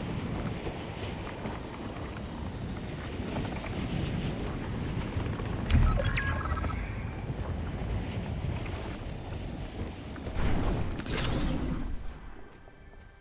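Wind rushes steadily past during a glide through the air.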